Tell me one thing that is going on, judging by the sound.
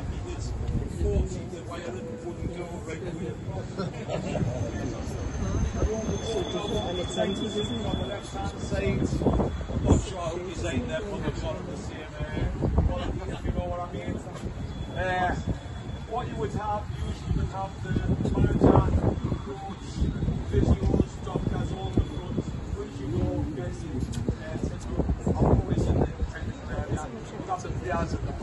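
A group of people murmur and chat outdoors in a large open space.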